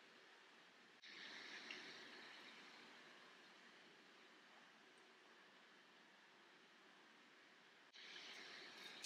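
Thick sauce pours and drips into a cup.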